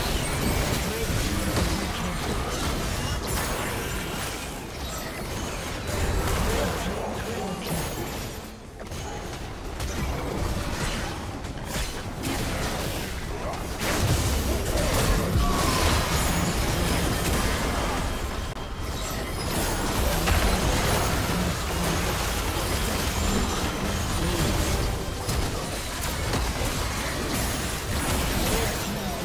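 Magic blasts and clashing weapons burst in a rapid, chaotic fight.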